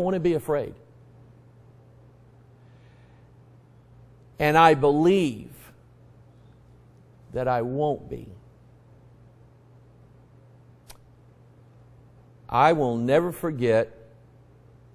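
A man preaches through a microphone in bursts, with long pauses between phrases.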